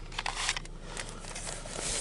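A newspaper rustles close by.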